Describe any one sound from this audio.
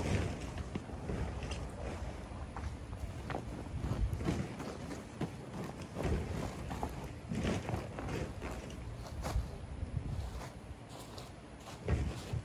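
Outdoors, wind rumbles against a microphone.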